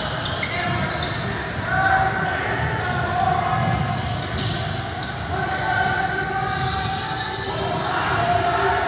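Spectators murmur and call out in a large echoing gym.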